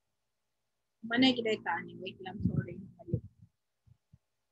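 A young woman speaks briefly through an online call.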